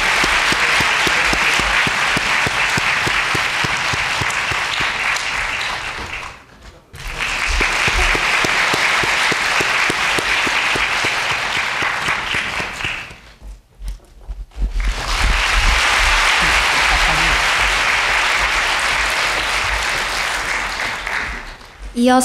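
A large crowd applauds steadily in a big hall.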